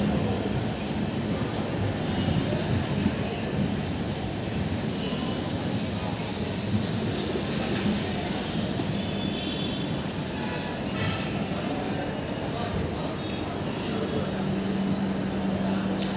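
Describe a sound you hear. A busy platform murmurs in a large, echoing covered space.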